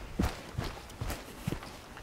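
Footsteps crunch on a dry, leafy trail.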